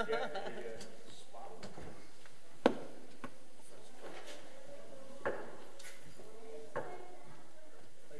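Men and women chat quietly at a distance in a room.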